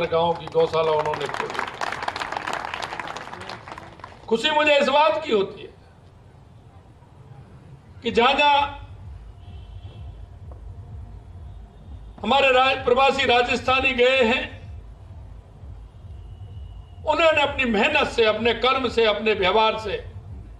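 A man speaks loudly and emphatically through a microphone in short bursts with pauses.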